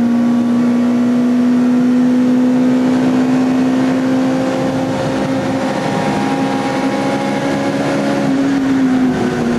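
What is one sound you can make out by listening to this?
A race car engine roars at full throttle, heard from inside the cockpit.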